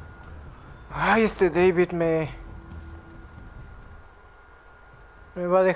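A young woman speaks briefly into a microphone close by.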